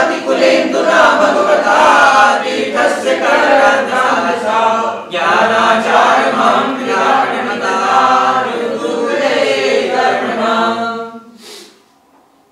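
An elderly man chants steadily into a microphone.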